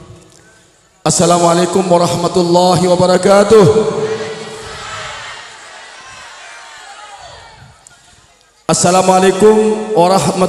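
A man speaks loudly through a microphone and loudspeakers, with a ringing echo.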